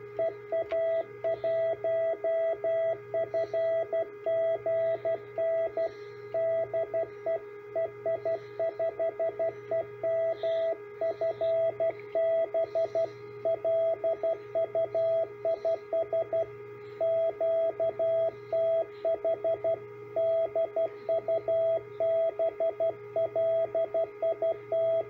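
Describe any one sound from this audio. A steady electronic tone beeps in rapid on-and-off bursts of Morse code from a small speaker.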